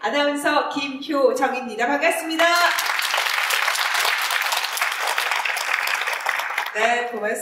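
A young woman speaks brightly into a microphone in an echoing hall.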